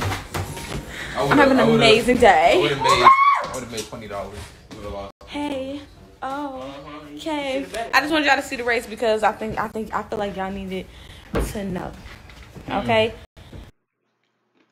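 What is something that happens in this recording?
A young woman talks with animation, close to a phone microphone.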